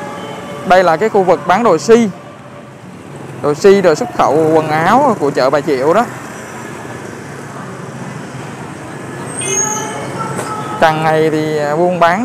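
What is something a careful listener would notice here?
Motorbike engines putter past on a street.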